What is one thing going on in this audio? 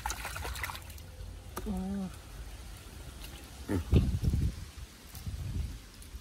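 Feet squelch as they step through deep mud.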